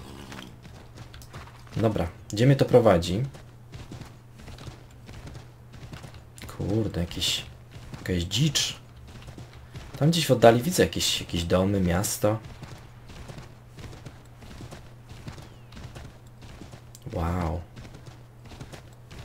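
A horse's hooves thud steadily on snowy ground.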